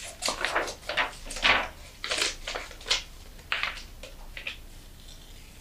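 Scissors snip and rustle through paper close by.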